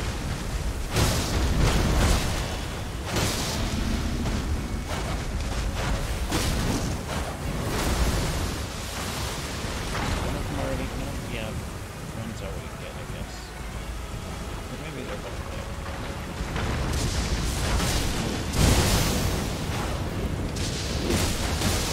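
Heavy blows crash and boom against a huge creature.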